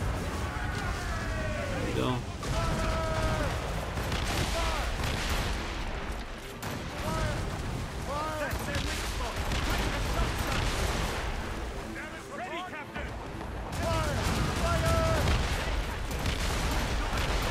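Men shout in the distance amid the battle.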